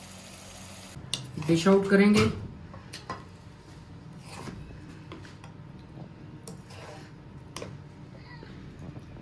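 A spoon scrapes and clinks against a frying pan.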